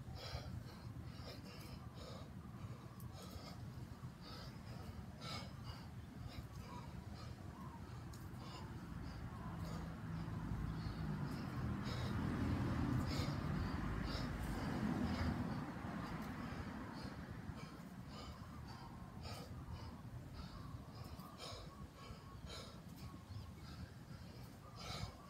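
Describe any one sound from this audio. A man breathes out hard with each kettlebell swing.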